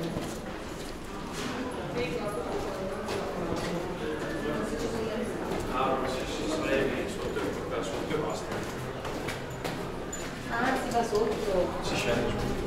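Footsteps scuff and tap on stone stairs.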